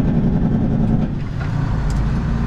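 A truck's engine dips briefly during a gear change, then pulls again.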